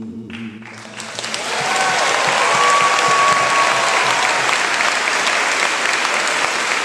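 A crowd cheers and applauds loudly in a large echoing hall.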